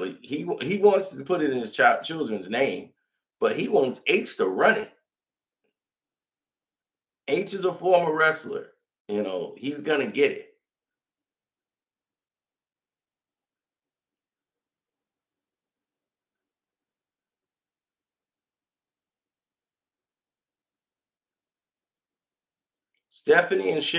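A man speaks calmly and with animation close to a microphone, in short bursts with pauses.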